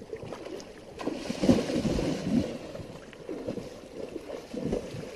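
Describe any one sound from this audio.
A man splashes and wades quickly through shallow water.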